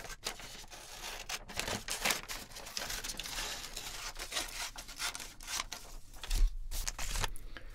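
Glossy paper rustles and crinkles as pages are handled.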